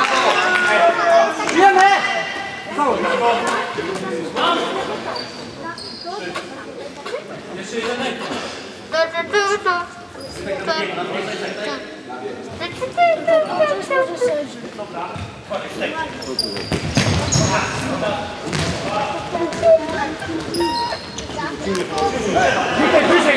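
Shoes squeak sharply on the hard court.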